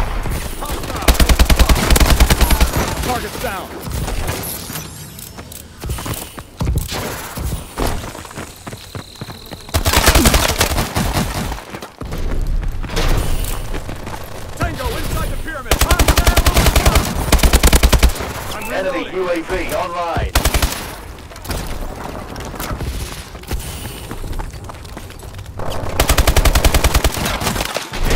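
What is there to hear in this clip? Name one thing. Automatic guns fire in rapid bursts.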